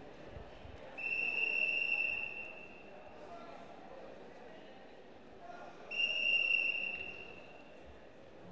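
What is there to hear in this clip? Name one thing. A referee's whistle blows shrilly twice.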